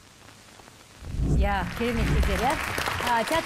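A woman claps her hands.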